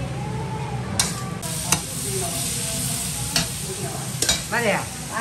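A metal spatula scrapes and clinks against a wok.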